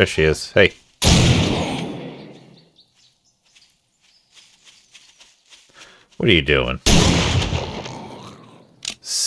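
A shotgun fires with a loud blast that rings away.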